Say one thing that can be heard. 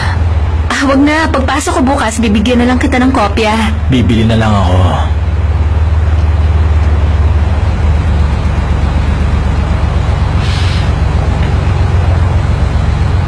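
A car engine hums low and steady.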